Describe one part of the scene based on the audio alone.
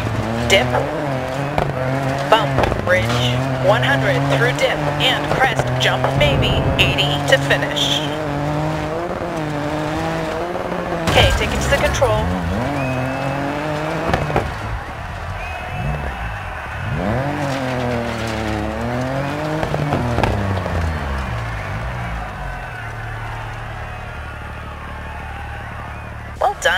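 A rally car engine roars and revs hard, shifting gears.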